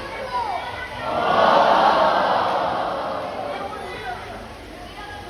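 A crowd cheers and applauds in a large open space.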